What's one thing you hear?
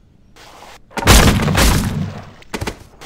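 A weapon fires with a loud blast.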